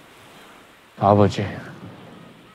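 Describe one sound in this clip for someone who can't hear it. A man speaks briefly in a calm voice nearby.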